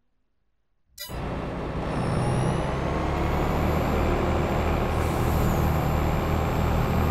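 A combine harvester engine roars steadily close by.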